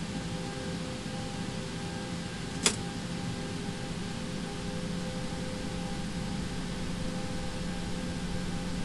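Jet engines idle with a steady low hum.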